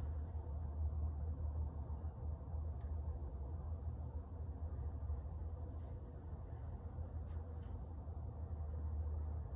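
Tape peels and crackles softly as it is pulled and pressed down.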